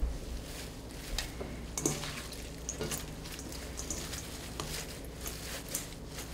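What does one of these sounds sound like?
Hands toss and rustle fresh leaves in a metal bowl.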